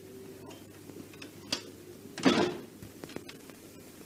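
A door clicks shut.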